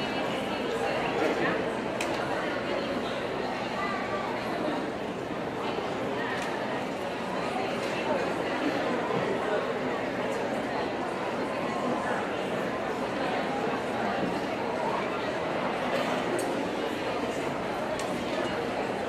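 A large crowd murmurs and chatters in an echoing hall.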